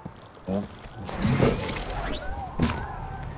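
A blaster fires a shot.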